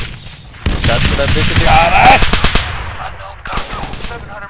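A large explosion booms and rumbles nearby.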